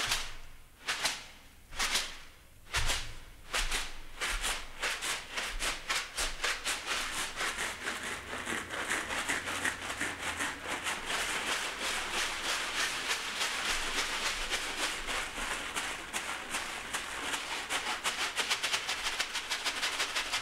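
A hand-held container is shaken in rhythmic bursts that quicken into a dense rattle.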